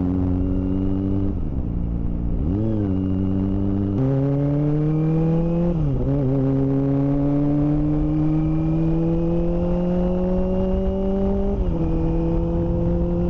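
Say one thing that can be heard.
A motorcycle engine hums close by and rises in pitch as the rider speeds up and shifts gears.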